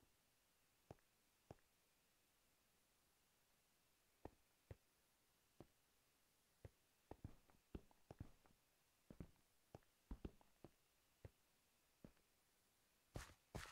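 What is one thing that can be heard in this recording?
Footsteps tap on stone blocks at an uneven pace.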